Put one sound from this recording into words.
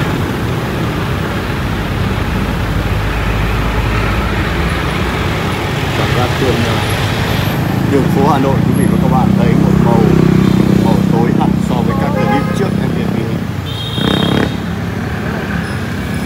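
City traffic murmurs steadily all around, outdoors.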